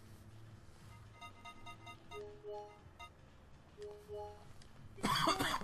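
Short electronic menu tones beep one after another.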